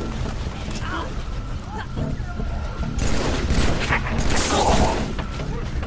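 A rifle fires short bursts of shots.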